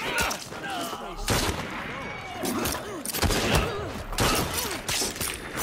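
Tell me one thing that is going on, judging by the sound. Punches land with heavy thuds in a brawl.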